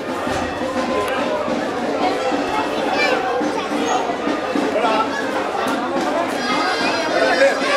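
A crowd of men, women and children chatters loudly close by.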